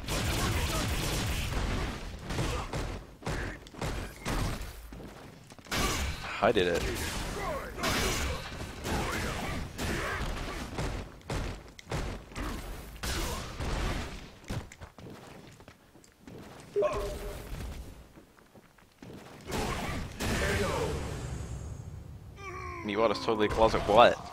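Punches and kicks land with sharp smacking hits.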